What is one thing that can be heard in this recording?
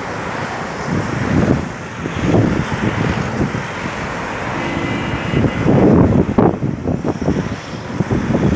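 A line of vehicles drives past on a paved road, engines humming and tyres rolling.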